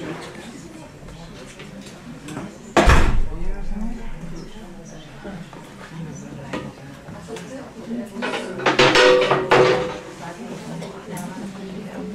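An elderly audience murmurs and chats quietly in a large room.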